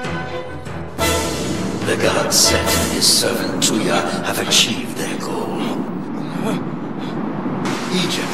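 A man screams in agony.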